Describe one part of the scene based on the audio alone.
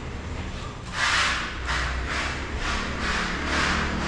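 A hand scrapes or sands a wall in quick, rhythmic strokes.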